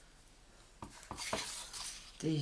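A sheet of paper rustles as it is lifted.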